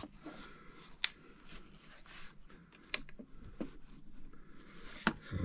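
A plastic controller clicks and knocks as it is handled.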